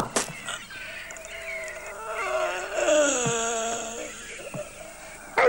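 A man groans loudly in pain, close by.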